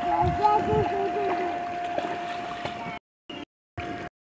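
Water splashes in a small pool.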